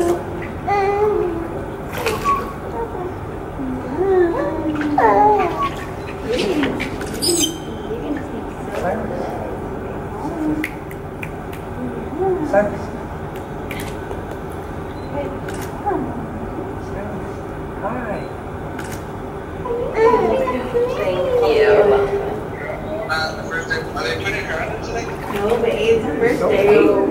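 A young woman talks and coos softly to a baby, close by.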